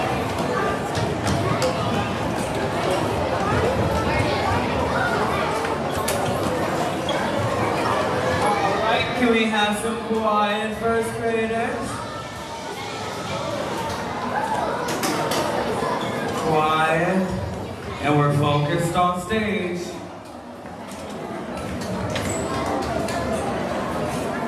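A crowd of children chatters and shouts in a large echoing hall.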